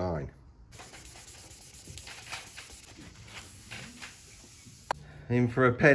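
Sandpaper rubs lightly over a painted surface.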